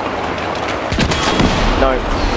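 A tank cannon fires with a loud bang.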